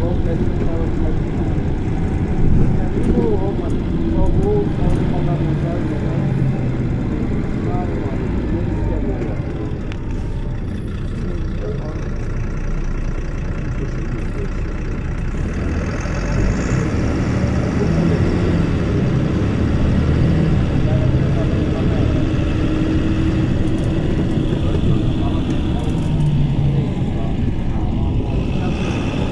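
A bus engine idles with a low, steady rumble nearby.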